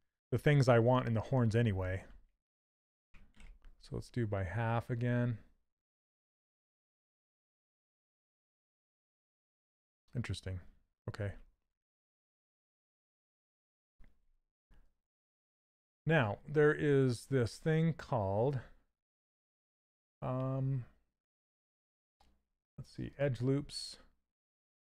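A man talks calmly and closely into a microphone, in bursts with pauses.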